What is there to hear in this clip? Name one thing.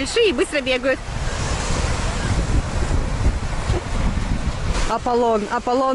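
Small waves wash onto a sandy shore.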